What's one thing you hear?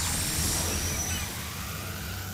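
An energy beam hisses and crackles.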